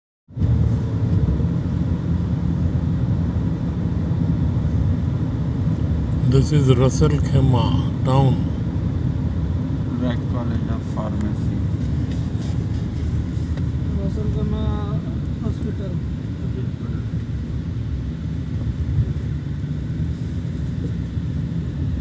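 Tyres hum on the road surface.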